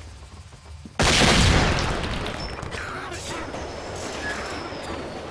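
A grenade bursts loudly with a hiss of smoke.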